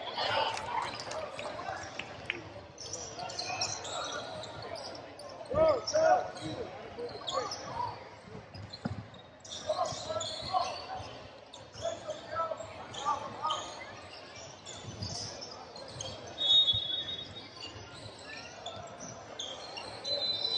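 Young men shout to each other across a large echoing gym.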